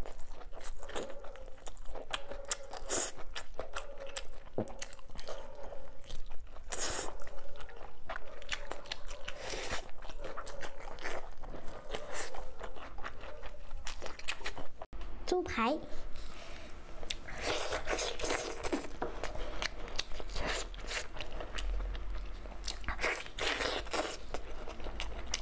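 A young woman slurps and sucks sauce from meat up close.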